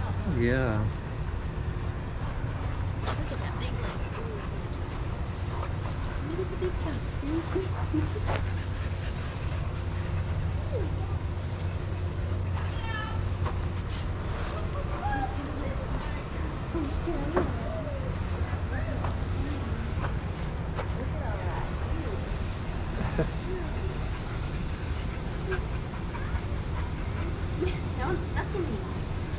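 Dogs pant heavily.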